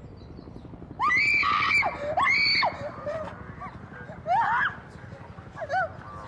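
A young woman screams and sobs in distress.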